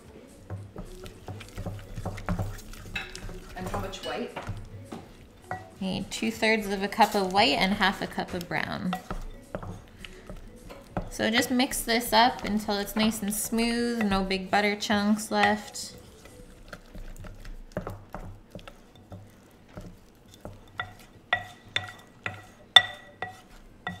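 A spoon scrapes and stirs against a ceramic bowl.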